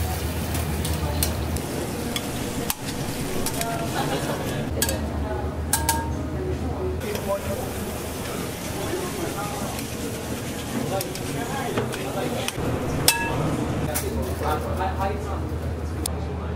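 Metal tongs clink against a pan and plate.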